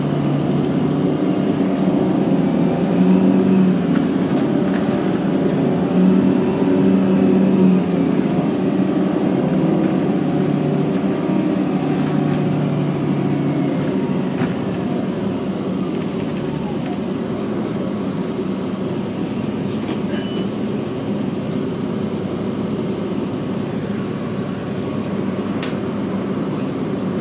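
A bus rattles and rumbles as it rolls along the road.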